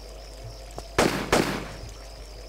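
Two pistol shots ring out loudly with a short echo.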